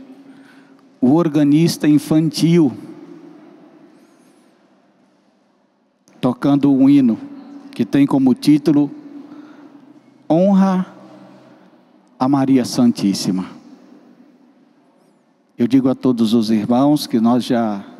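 A man speaks calmly into a microphone over a loudspeaker, with pauses, in a room with a slight echo.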